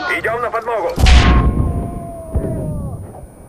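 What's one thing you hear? A loud boom bursts nearby.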